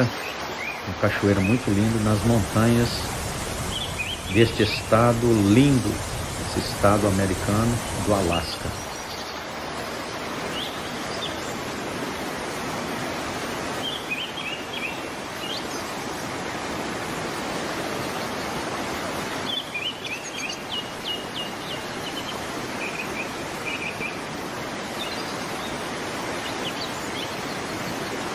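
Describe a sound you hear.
A waterfall rushes and roars steadily outdoors.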